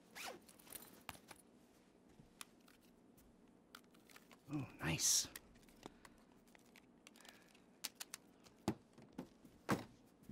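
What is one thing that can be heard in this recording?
Small items knock and rustle as they are handled.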